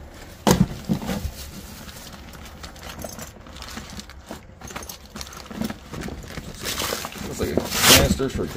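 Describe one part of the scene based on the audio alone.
Fabric gear rustles as it is lifted from a box.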